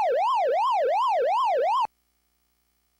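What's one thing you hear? An arcade game sounds a fast wavering electronic siren.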